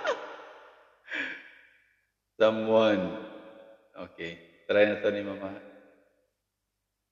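A man sings into a microphone close up, in short vocal phrases.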